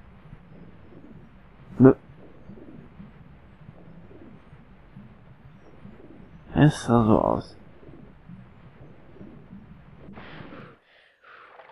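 Water gurgles and bubbles with a low underwater rumble.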